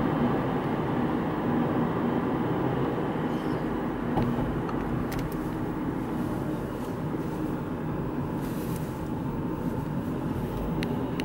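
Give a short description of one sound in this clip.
A pickup truck engine rumbles steadily as the truck drives ahead on the road.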